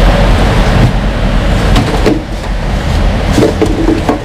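Wet fish slap and squelch in a metal sink.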